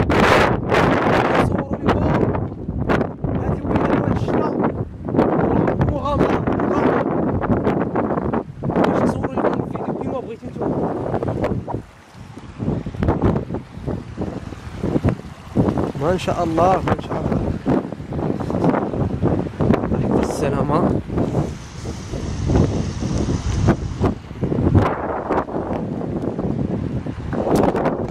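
Wind gusts across the microphone outdoors.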